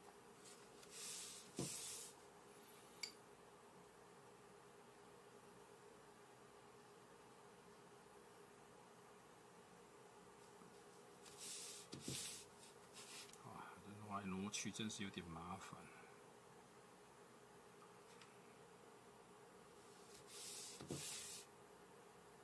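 Paper rustles as a hand shifts it.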